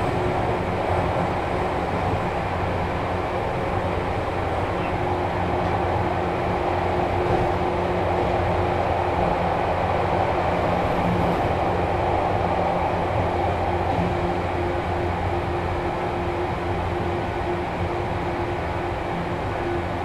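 An electric train hums and rumbles steadily.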